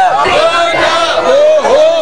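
A middle-aged man shouts loudly close by.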